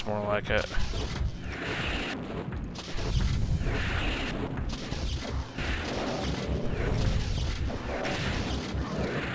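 Rapid energy blasts fire from a weapon.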